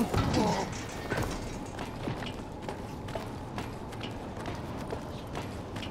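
Hands and feet clank on metal ladder rungs during a climb.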